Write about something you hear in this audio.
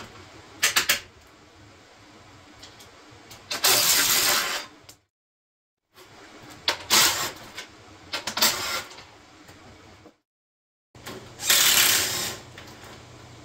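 A cordless power tool whirs loudly in short bursts.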